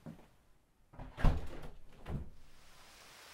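A window handle rattles and a window clunks open.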